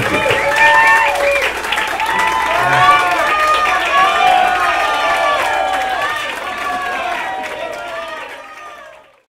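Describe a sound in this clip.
An acoustic guitar plays close by, its notes ringing and slowly fading away.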